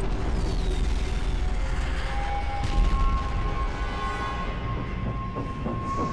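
A helicopter explodes with a loud blast.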